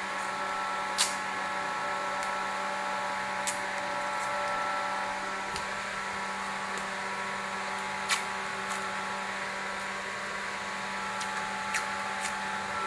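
Masking tape rips as it is torn off the roll.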